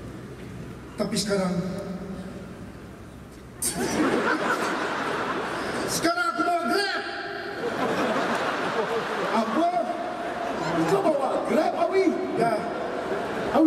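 A woman sings into a microphone over loudspeakers in a large open venue.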